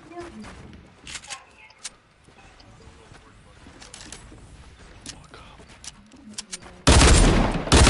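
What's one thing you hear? Wooden planks snap into place with quick clunks.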